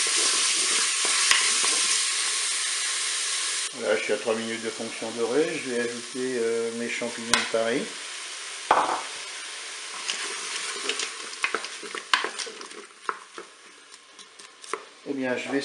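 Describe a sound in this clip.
A wooden spoon scrapes and stirs food in a pan.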